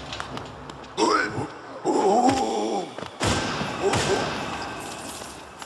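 A sword slashes and strikes with sharp, ringing hits.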